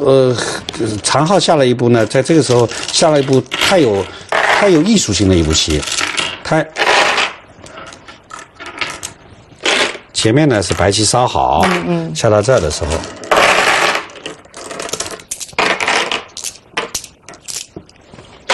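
Go stones click onto a wooden board.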